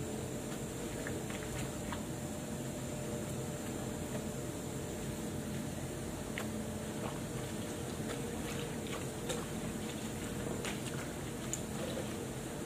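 Hands handle small objects with light clicks and taps.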